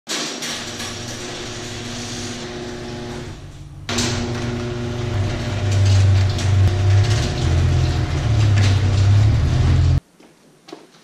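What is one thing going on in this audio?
A garage door opener motor hums and rumbles as a door rolls up.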